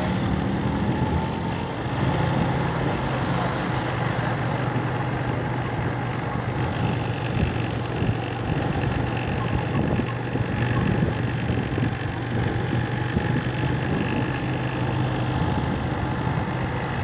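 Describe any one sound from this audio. An engine rumbles steadily nearby.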